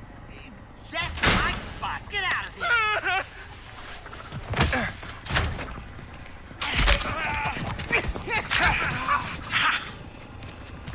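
A man shouts angrily at close range.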